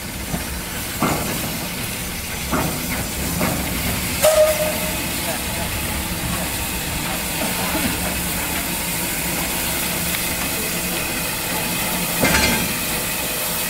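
Metal wheels clank and knock on the rail joints.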